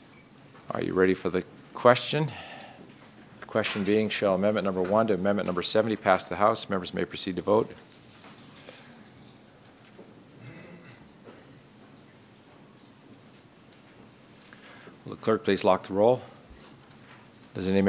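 A man speaks calmly through a microphone, in bursts with pauses.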